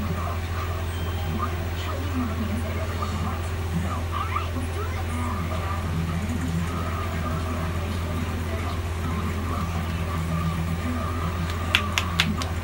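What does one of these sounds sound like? Hands rub and scrub through hair.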